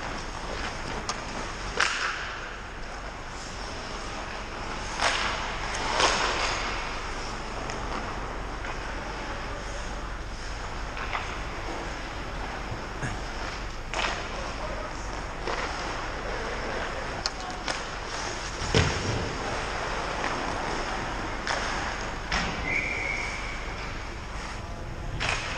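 Skate blades scrape and hiss on ice in a large echoing rink.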